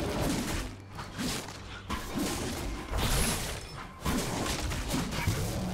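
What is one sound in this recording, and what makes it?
Fantasy video game combat effects clash and thud.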